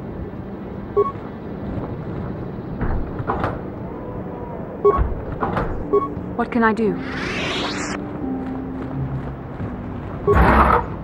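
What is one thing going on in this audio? Short electronic chimes sound as a game menu opens and closes.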